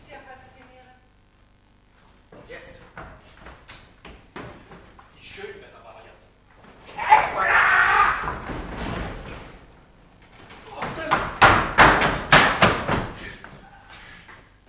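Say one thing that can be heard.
A woman speaks with animation on an echoing stage.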